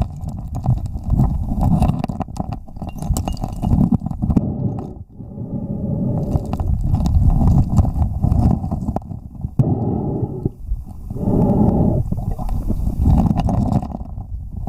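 Stones knock and clatter underwater.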